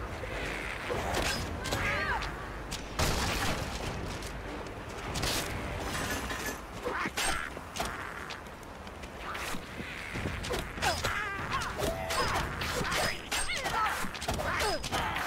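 Blades slash and strike in quick, sharp bursts.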